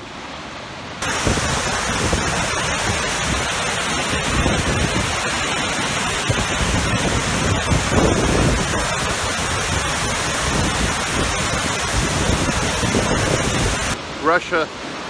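A waterfall roars loudly and steadily.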